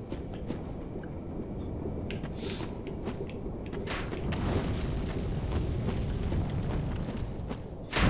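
Footsteps crunch on the ground at a run.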